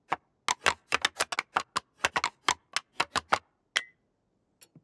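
Blocks clack into place one after another in quick taps.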